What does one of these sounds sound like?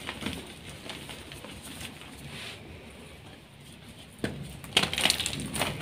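Hands crumble and rub dry powdery chalk, with soft crunching and rustling.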